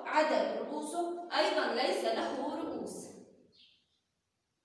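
A woman speaks clearly and calmly nearby.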